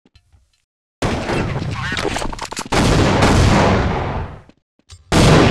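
A grenade bursts with a loud blast and a long hiss.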